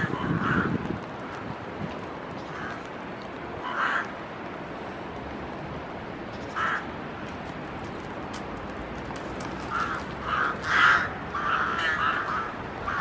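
Crows caw repeatedly from the treetops.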